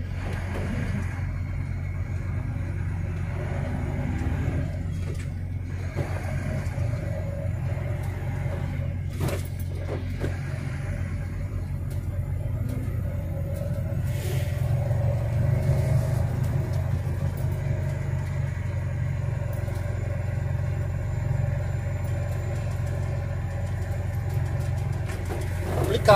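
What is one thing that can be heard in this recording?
A vehicle engine hums steadily while driving along a street.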